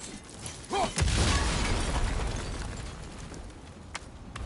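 An explosion bursts with a loud boom and rumbles away.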